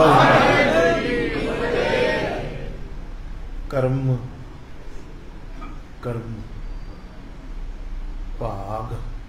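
An elderly man speaks slowly and calmly through a microphone and loudspeakers, with pauses between phrases.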